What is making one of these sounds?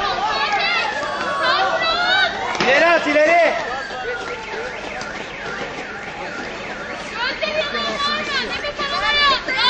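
A crowd of men and women shouts and whistles loudly outdoors.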